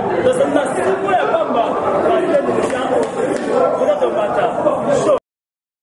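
Hands clap.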